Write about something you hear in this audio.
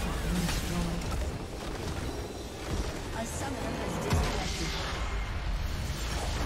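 Game spell effects crackle and whoosh in a battle.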